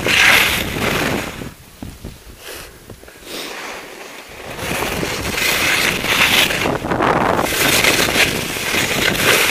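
Skis carve and scrape across snow in bursts.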